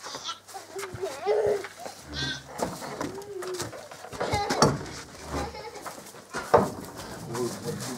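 Metal buckets clank and rattle.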